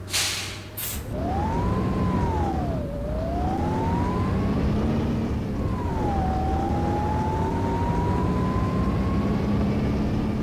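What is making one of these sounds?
A bus engine revs up, its pitch rising and falling as it pulls away.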